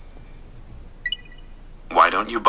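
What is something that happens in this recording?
A phone gives a short chime.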